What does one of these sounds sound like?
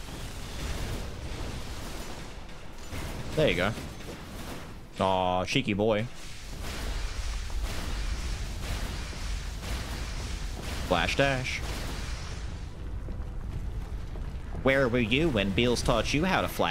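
Magic blasts boom and rumble low.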